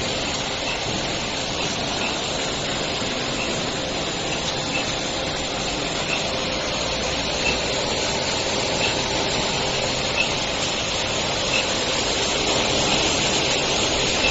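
Paper strips rustle as they feed through rollers.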